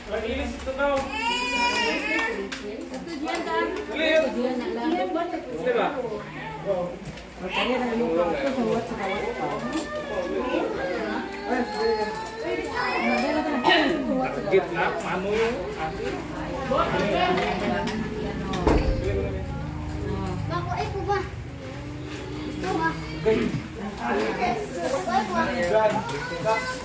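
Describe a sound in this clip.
A crowd of men and women chat and talk over one another close by.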